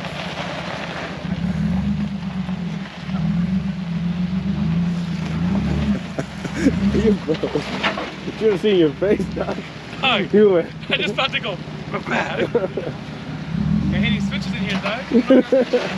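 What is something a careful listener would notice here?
Tyres grind and crunch over rock.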